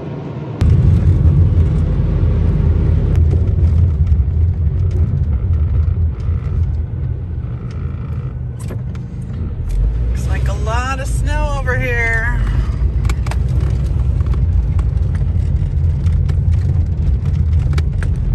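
Tyres crunch and rumble over packed snow and ice.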